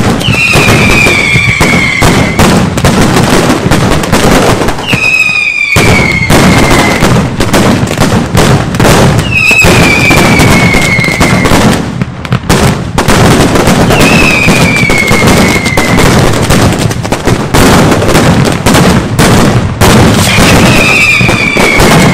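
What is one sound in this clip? Firecrackers explode in a rapid, deafening barrage outdoors.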